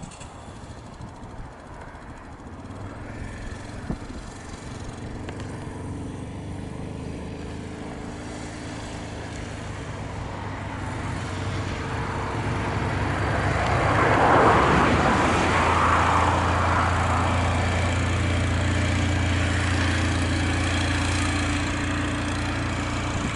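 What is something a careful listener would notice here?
A quad bike engine hums steadily, growing louder as it comes closer.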